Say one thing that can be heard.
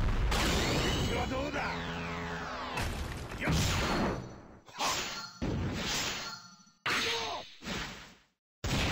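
Sword slash sound effects from a fighting game whoosh and clash.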